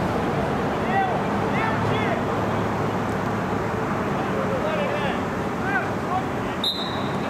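Players shout to each other across the pitch.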